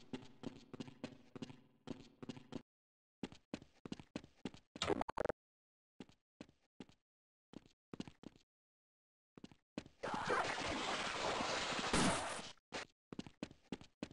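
Footsteps clank steadily on a metal walkway.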